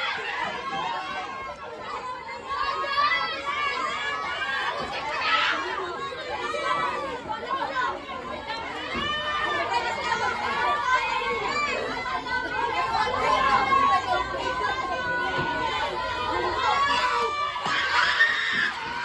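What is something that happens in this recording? Young girls shout and cheer with animation nearby, outdoors.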